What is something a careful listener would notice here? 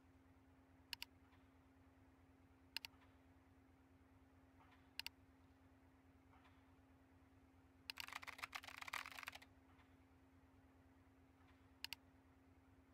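Sharp computer clicks sound now and then.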